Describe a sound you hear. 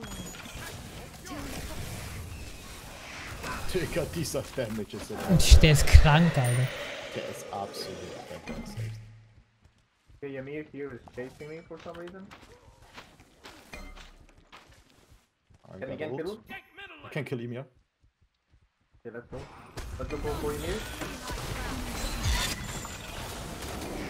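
Game spell effects whoosh and blast.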